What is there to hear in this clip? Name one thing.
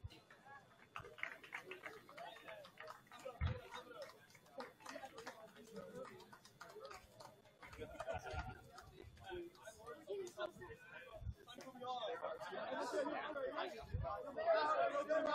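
A group of young people talks and murmurs at a distance outdoors.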